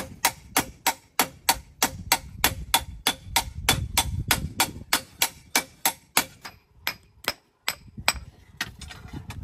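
A hammer strikes metal in a fast, steady ringing rhythm.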